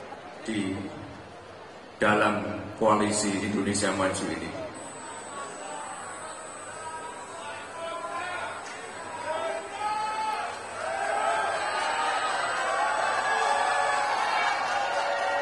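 A young man speaks with animation into a microphone over a loudspeaker.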